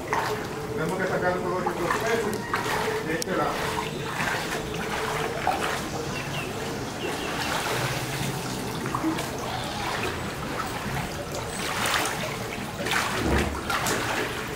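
Water splashes as a man wades and drags a net through it.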